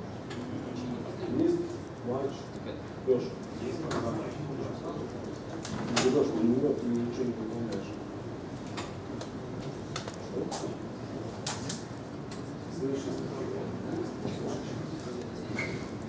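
A man speaks to an audience, heard from a distance.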